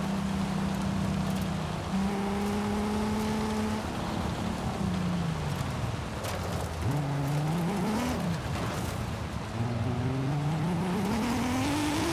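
Tyres skid and hiss on gravel.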